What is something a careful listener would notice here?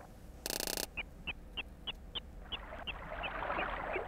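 A fishing reel clicks quickly as line is wound in.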